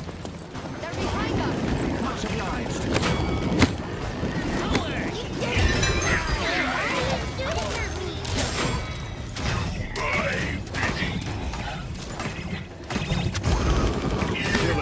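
Energy weapons fire rapidly in a game battle.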